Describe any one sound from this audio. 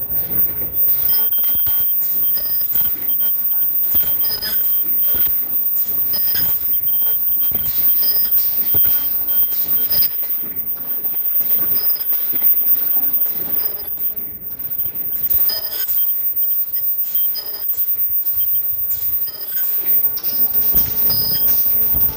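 A machine runs with rapid, rhythmic clattering.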